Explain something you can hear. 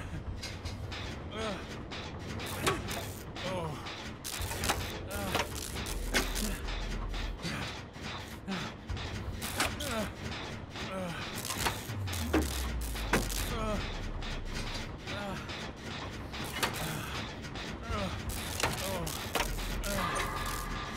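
Metal parts of a machine click and clatter as they are worked on.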